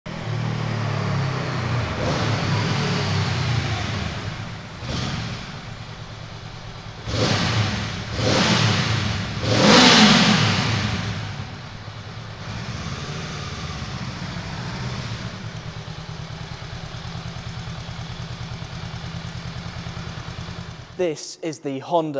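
A motorcycle engine rumbles and revs as it rides closer through an echoing tunnel.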